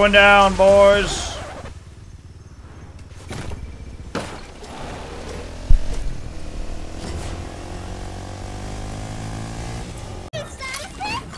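A small motor vehicle engine hums and revs.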